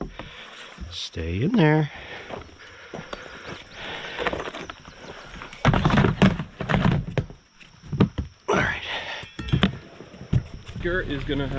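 A hard plastic tub scrapes and thumps on dirt.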